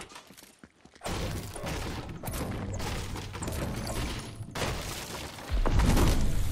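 A pickaxe strikes wood again and again with sharp thuds.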